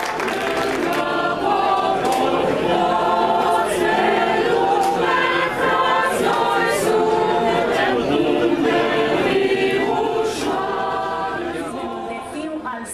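A choir of girls and women sings in unison.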